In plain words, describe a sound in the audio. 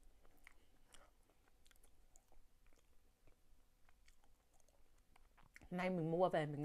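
A woman chews food softly close to a microphone.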